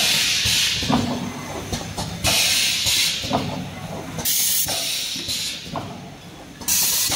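Machine parts clack and knock at a steady pace.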